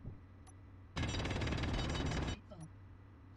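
A cutting tool grinds loudly against rock.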